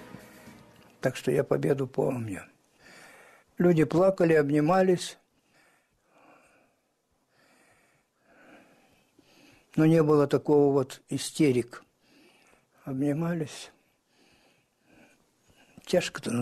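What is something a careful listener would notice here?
An elderly man speaks slowly and calmly, close to a microphone, with long pauses.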